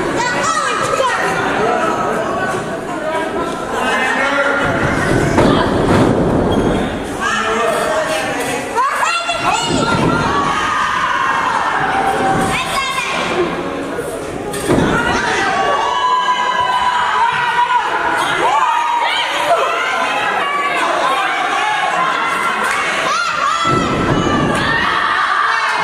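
A crowd cheers and shouts in an echoing hall.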